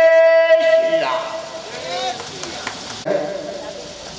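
An elderly man sings into a microphone, heard through loudspeakers.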